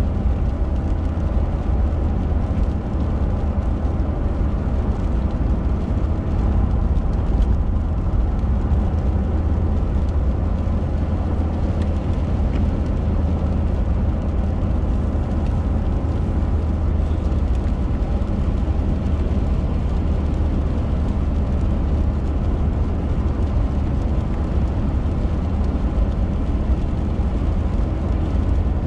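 Raindrops tap faintly on the windscreen.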